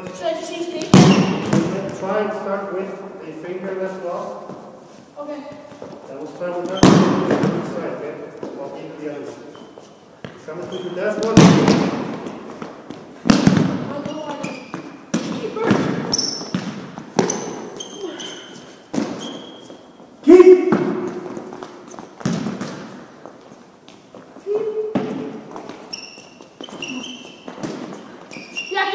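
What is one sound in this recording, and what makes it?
A ball thuds and bounces on a hard floor, echoing in a large hall.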